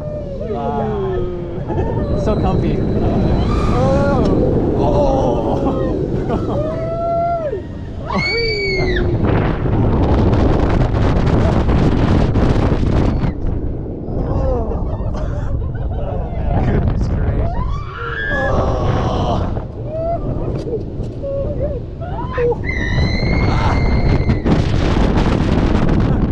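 Wind rushes loudly past on a fast roller coaster ride.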